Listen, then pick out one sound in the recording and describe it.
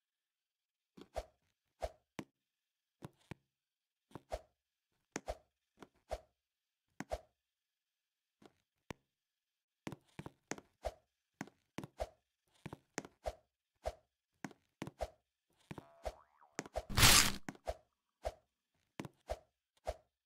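Short soft thumps of a game character jumping repeat in quick bursts.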